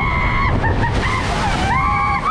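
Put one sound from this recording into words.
Water splashes heavily over the raft.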